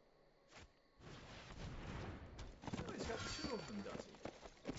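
A shimmering magical effect swells as a creature is summoned.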